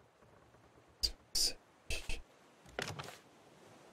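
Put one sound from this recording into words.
Wooden knocks sound several times in quick succession.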